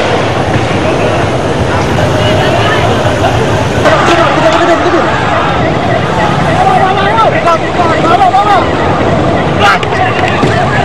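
A large crowd of men shouts and chants outdoors.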